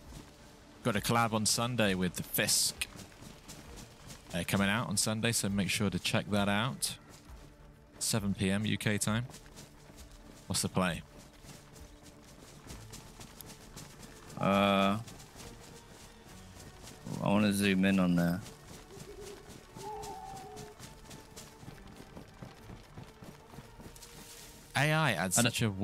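Footsteps brush through grass and undergrowth.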